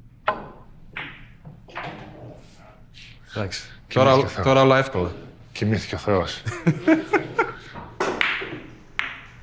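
Pool balls knock together and roll on the table.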